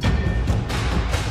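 Wooden swords clack together.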